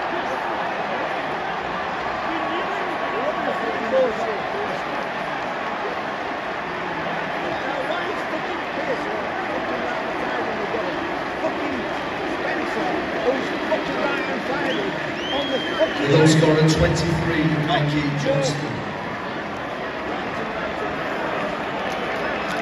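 A large stadium crowd chants and cheers loudly outdoors.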